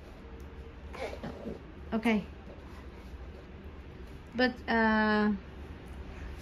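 A young girl makes playful vocal sounds close by.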